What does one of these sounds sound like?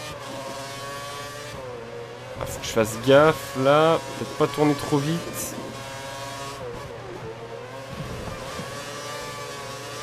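A racing car engine whines at high revs, rising and falling as it shifts gears.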